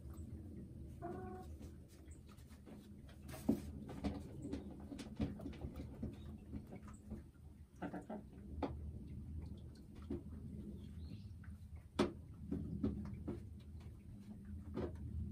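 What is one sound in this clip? A hen clucks and murmurs softly close by.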